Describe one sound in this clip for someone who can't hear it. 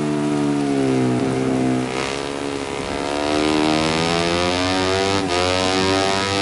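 A motorcycle engine revs high, its pitch dropping and rising with gear changes.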